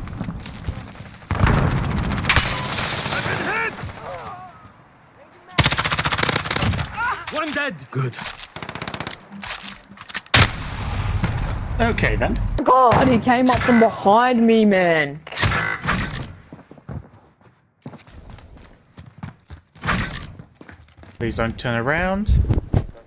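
Rifle shots crack in a video game.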